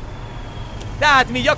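A man shouts loudly close by.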